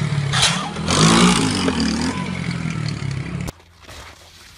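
A motorcycle engine revs loudly.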